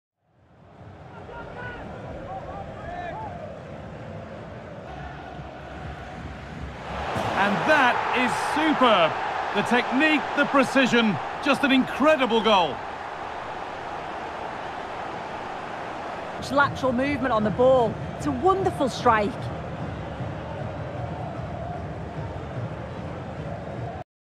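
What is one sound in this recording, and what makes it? A stadium crowd cheers and roars throughout.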